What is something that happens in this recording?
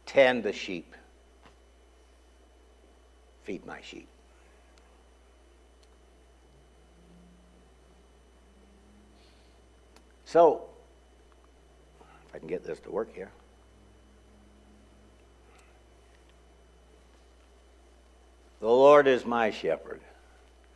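An elderly man speaks calmly into a microphone, in short bursts with long pauses.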